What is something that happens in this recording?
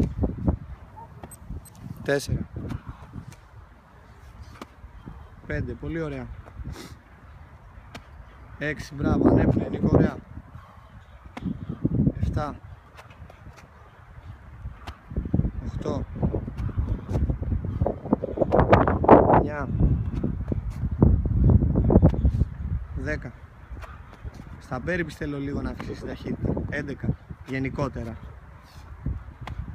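A man lands with dull thuds on a hard track, again and again.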